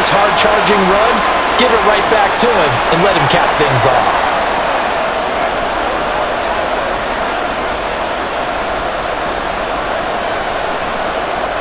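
A large crowd murmurs and cheers steadily in a big open stadium.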